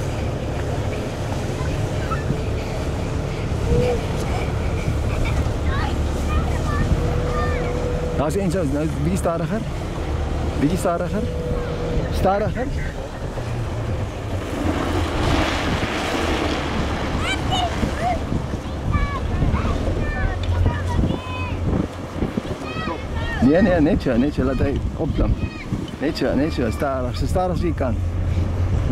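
Young children shout and squeal excitedly nearby.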